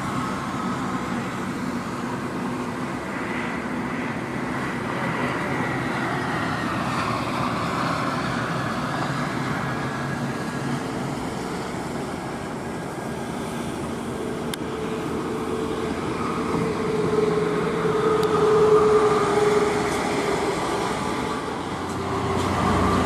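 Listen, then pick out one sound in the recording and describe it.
A heavy truck's diesel engine rumbles as it drives along a highway.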